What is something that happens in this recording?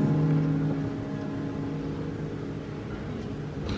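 A piano chord rings out and slowly fades.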